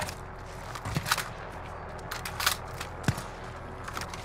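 Rifle shots crack sharply a few times.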